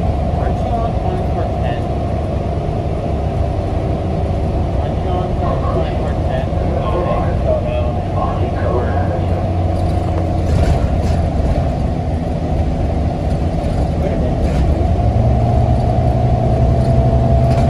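Loose panels rattle inside a moving bus.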